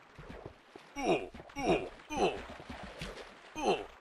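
Zombies groan in low, falling moans, over and over.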